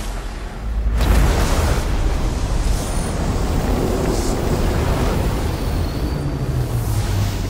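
A rushing, roaring surge of magical energy swells up and keeps going.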